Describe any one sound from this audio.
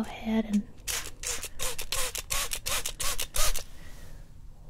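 A spray bottle spritzes in quick bursts.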